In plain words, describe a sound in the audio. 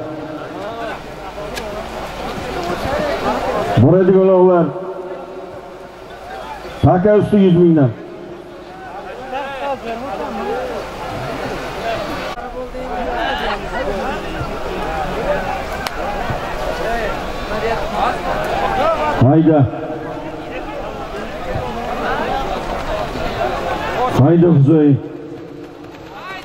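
A crowd of men shouts and calls out outdoors.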